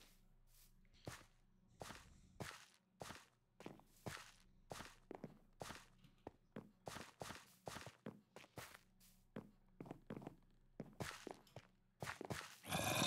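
Footsteps crunch steadily over dirt and grass.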